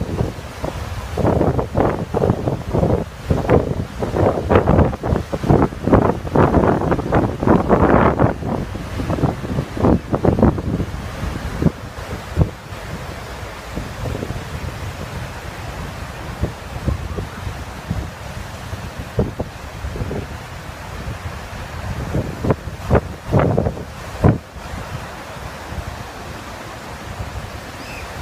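Waves break and wash up on a shore.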